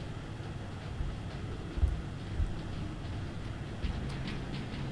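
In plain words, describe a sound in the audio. Heavy armoured footsteps thud slowly on hard ground.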